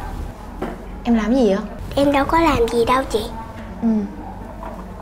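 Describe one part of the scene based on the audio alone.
A young girl speaks brightly and close by.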